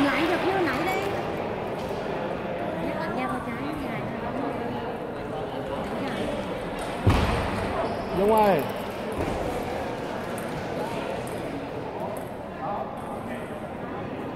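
Men talk nearby in a large echoing hall.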